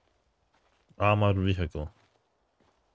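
An adult man speaks close to a headset microphone.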